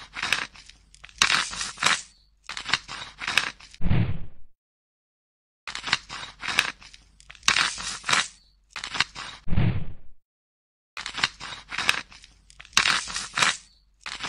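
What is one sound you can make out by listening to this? A knife scrapes and crunches through a crisp surface in quick repeated strokes.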